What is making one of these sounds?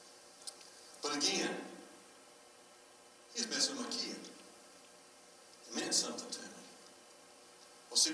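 An elderly man speaks through a microphone in short, emphatic bursts, echoing in a large hall.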